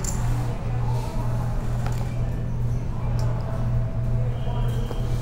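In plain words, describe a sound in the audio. Poker chips click against each other on a table.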